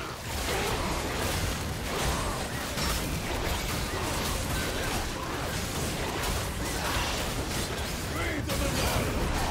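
Magic spells crackle and blast in a rapid, busy fight.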